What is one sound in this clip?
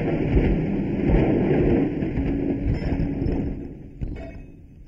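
A printing press rumbles loudly as paper runs through it.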